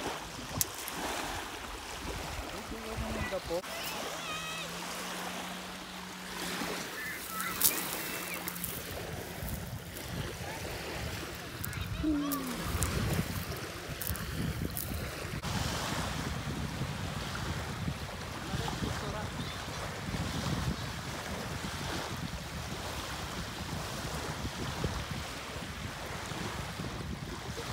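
Small waves wash and splash onto a shore.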